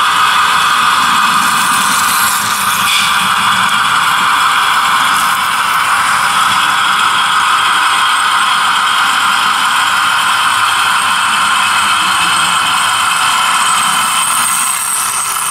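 A model train hums and whirs steadily as it rolls along its track.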